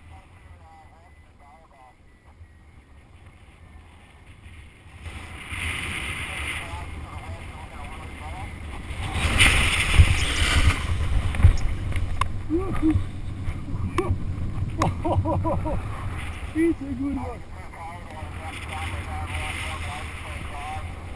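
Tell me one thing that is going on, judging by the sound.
Wind rushes over the microphone of a paraglider in flight.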